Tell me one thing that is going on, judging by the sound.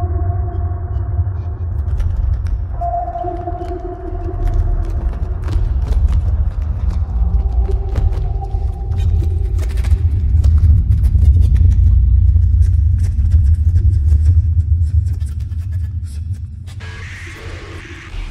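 Electronic music hums and pulses with a deep bass.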